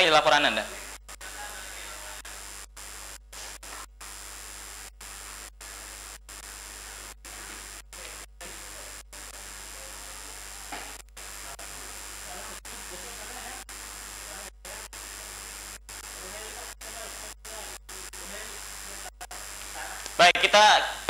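A young woman speaks faintly through a live phone link.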